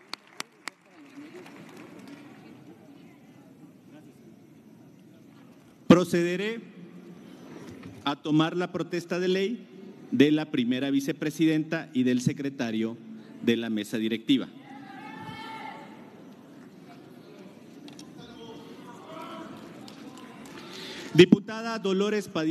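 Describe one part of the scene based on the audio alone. A large crowd murmurs in an echoing hall.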